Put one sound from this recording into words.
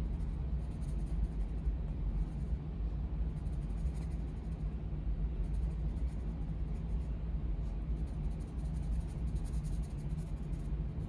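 A coloured pencil scratches softly on paper in quick strokes.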